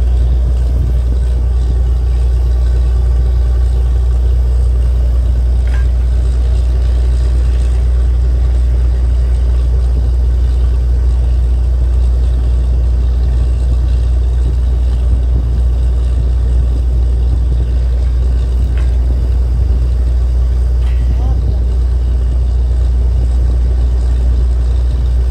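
A drilling rig's diesel engine drones loudly and steadily nearby, outdoors.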